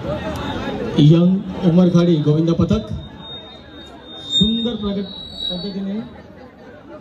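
Men in a crowd shout and chant loudly in bursts.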